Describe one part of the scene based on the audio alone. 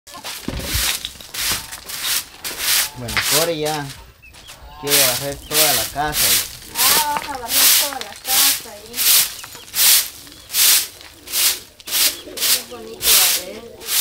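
A broom sweeps a dirt floor in steady, rhythmic strokes.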